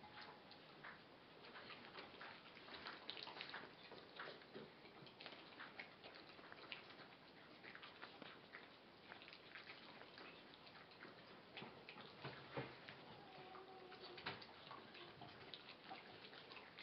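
A puppy chews dry treats from a hand.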